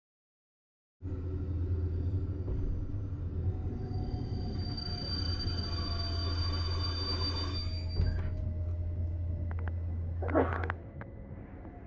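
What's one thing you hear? A train rumbles into a station and slows to a stop.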